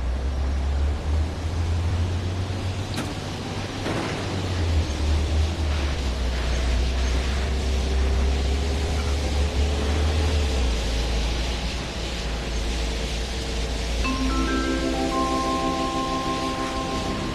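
Tyres hiss on a road.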